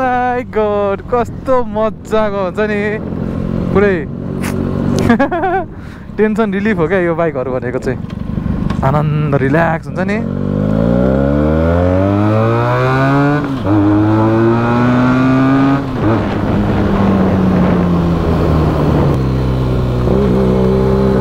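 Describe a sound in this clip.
A motorcycle engine hums close by, revving up as the bike picks up speed.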